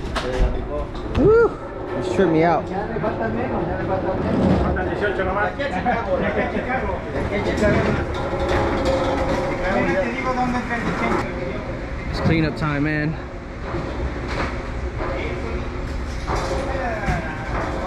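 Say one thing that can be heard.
Men and women talk over one another in a large echoing hall.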